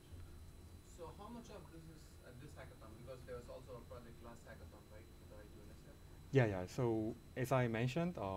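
A young man speaks into a microphone in a calm, lecturing tone.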